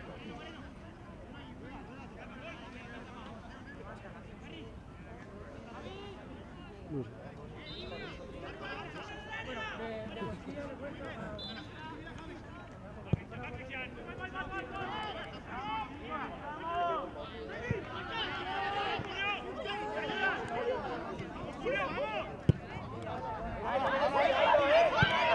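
Young players shout and call out across an open outdoor pitch.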